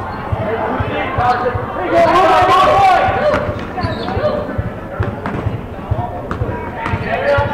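A basketball bounces repeatedly on a wooden floor in a large echoing gym.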